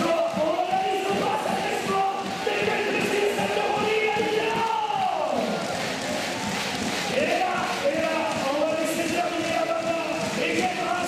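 A large crowd applauds in an echoing arena.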